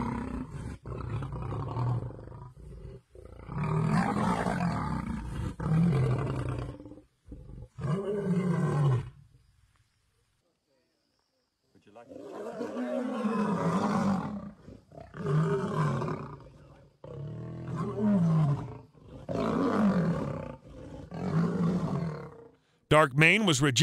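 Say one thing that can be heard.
Lions growl and snarl fiercely in close, rough bursts.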